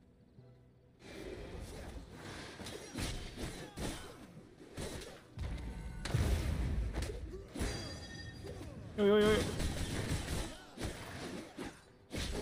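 Weapons clash and magic blasts go off in a fight in a game.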